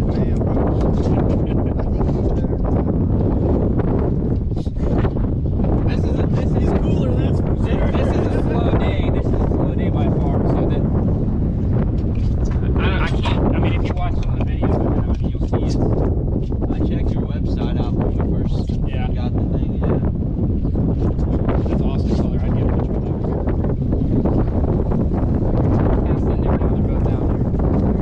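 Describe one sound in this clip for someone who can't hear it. Adult men talk with animation outdoors in strong wind.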